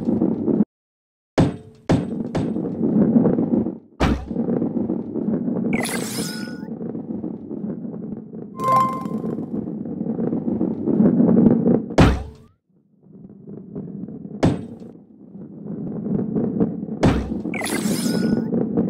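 A ball rolls along a wooden track with a low, steady rumble.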